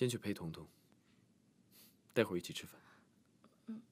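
A young man speaks calmly up close.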